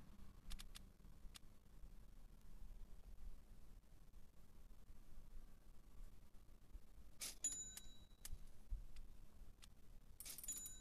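Short electronic clicks sound as menu buttons are pressed.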